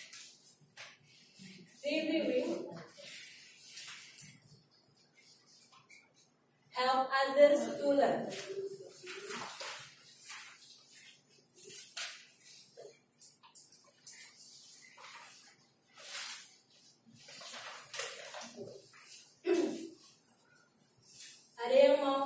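A woman speaks to a group.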